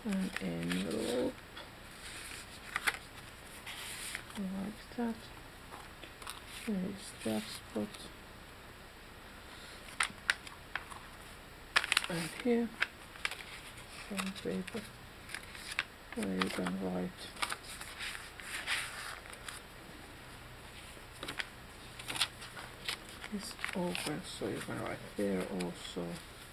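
Paper rustles and crinkles as pages are handled and turned.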